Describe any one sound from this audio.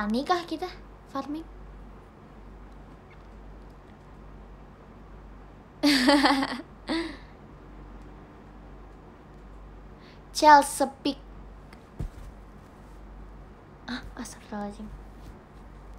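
A young woman speaks close to a microphone in short bursts, with pauses between.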